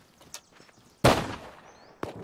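A shotgun fires a loud shot.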